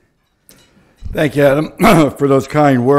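A middle-aged man speaks into a microphone.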